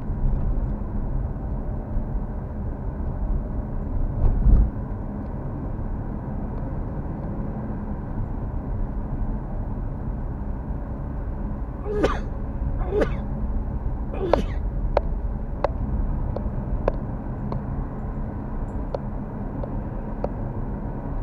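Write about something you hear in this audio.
A car engine hums steadily with road rumble from inside the car.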